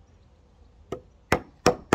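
A hammer knocks sharply on wood.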